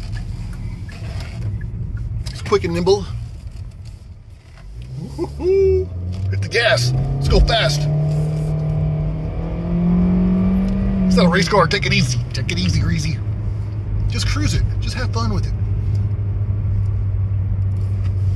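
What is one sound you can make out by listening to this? A car engine hums steadily and revs up as the car speeds up.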